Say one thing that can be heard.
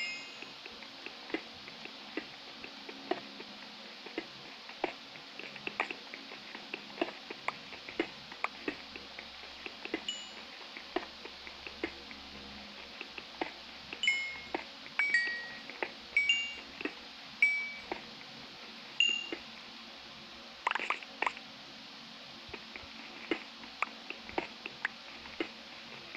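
Stone blocks crunch and crumble in quick, repeated taps as a pickaxe digs.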